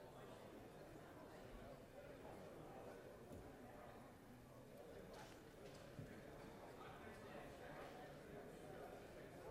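A crowd of men and women chatter in a large echoing room.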